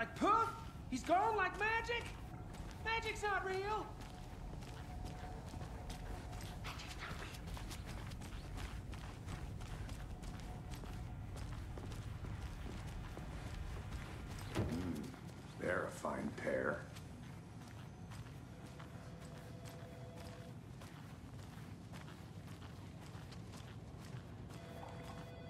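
Footsteps walk steadily on a hard floor and up stairs.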